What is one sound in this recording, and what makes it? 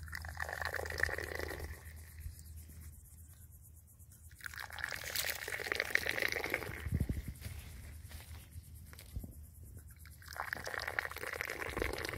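Tea pours and splashes into a glass.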